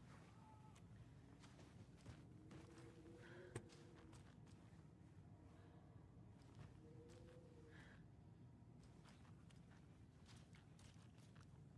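Footsteps tap softly across a hard floor.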